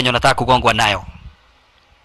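A young man speaks mockingly, close by.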